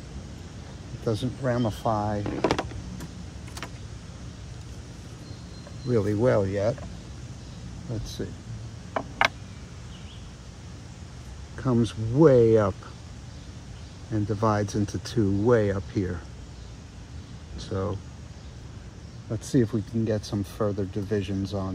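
An older man speaks calmly and close by, in short phrases with pauses.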